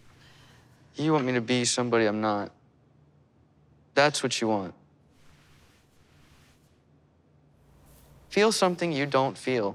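A man speaks calmly and softly, close by.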